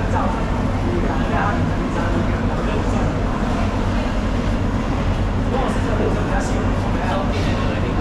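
A knife slices through fish flesh.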